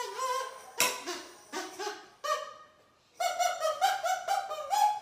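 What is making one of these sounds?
A boy plays a quick tune on a whistle, note by note.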